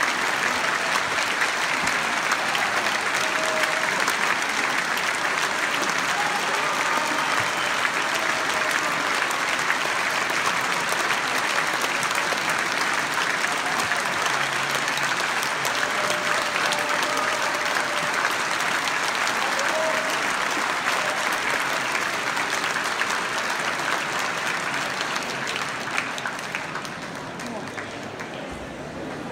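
A large audience applauds in a large echoing concert hall.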